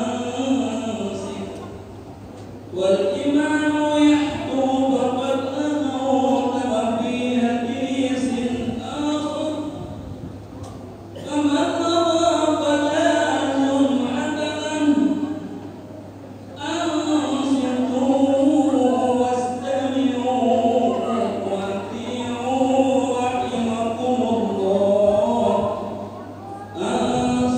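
A man chants in a drawn-out, melodic voice in an echoing hall, pausing between long phrases.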